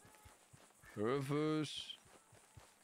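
A young man calls out loudly close to a microphone.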